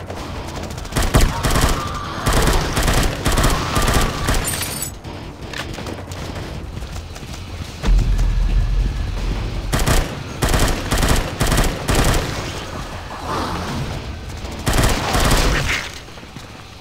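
A rifle fires in rapid bursts in a video game.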